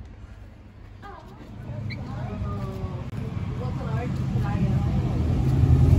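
A young child talks excitedly nearby.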